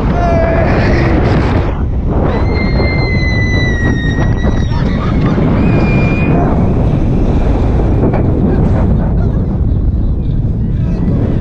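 Roller coaster wheels rumble and clatter along the track.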